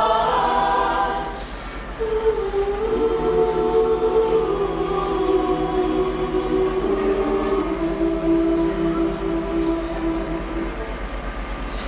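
A mixed choir sings together in harmony.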